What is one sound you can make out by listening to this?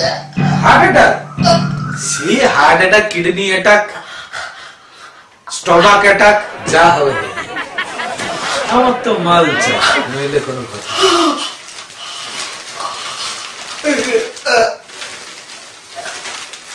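A man groans and cries out loudly, close by.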